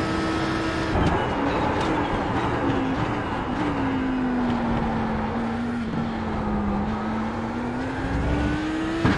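A race car engine slows and drops in pitch under braking, then climbs again.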